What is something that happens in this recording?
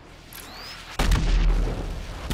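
An explosion bursts with a deep rumbling boom.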